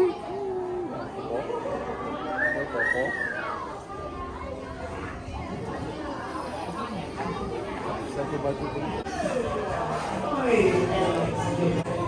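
Several adults chat casually nearby.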